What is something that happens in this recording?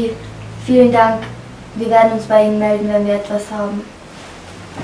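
A young woman speaks nearby in a drawn-out, wavering voice.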